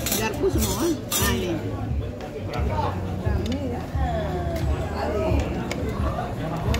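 Several women chat nearby in relaxed voices.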